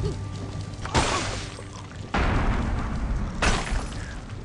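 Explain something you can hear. Wooden planks crash and clatter as they break.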